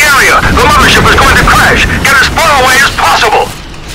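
A rocket launcher fires with a whoosh.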